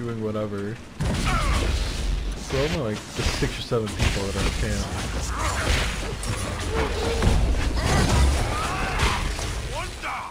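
Magic blasts crackle and whoosh in a fierce fight.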